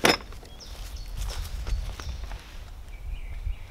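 Footsteps crunch through dry leaves on grass.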